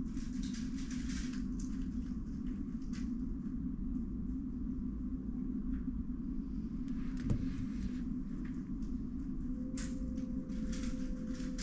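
Plastic puzzle cubes click and rattle as they are turned quickly by hand.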